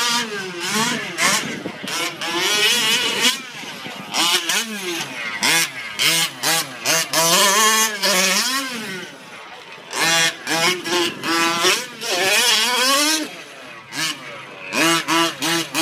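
The two-stroke gas engine of a 1/5-scale radio-controlled truck revs up and down, its whine rising and falling.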